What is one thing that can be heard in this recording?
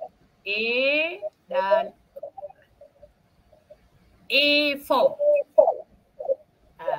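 A woman speaks with animation over an online call, her voice rising and falling in pitch.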